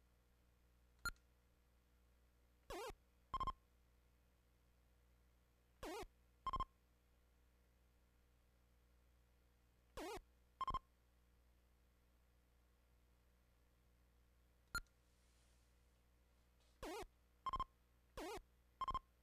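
Short electronic game bleeps and chirps sound now and then.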